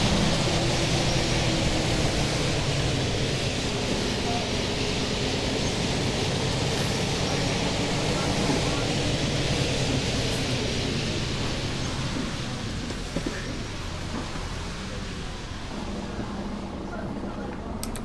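A bus engine hums steadily while driving, then eases as the bus slows.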